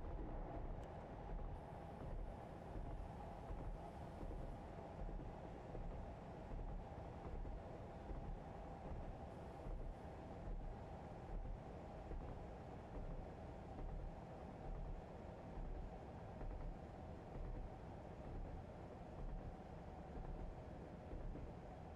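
A train engine rumbles steadily from inside the cab.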